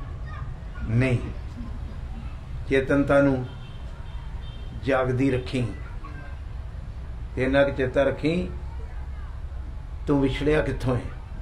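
An elderly man speaks forcefully into a microphone in short bursts, with pauses between them.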